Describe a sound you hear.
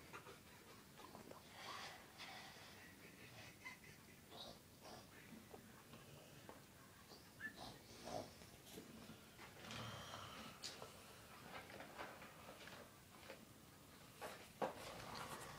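A man mumbles sleepily close by.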